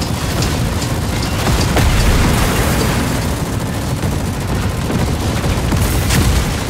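A heavy engine rumbles steadily.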